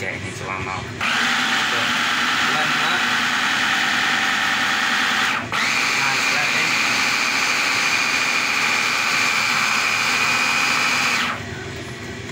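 A hand blender whirs loudly and steadily.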